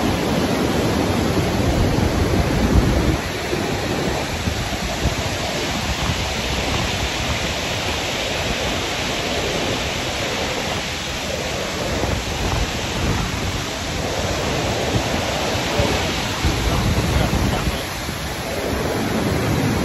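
Strong wind buffets a microphone throughout.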